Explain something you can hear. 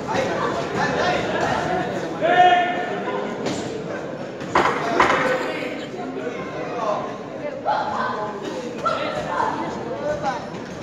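A crowd of spectators shouts and cheers nearby in a large echoing hall.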